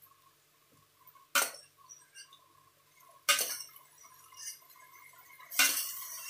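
Metal tongs clink against a pot.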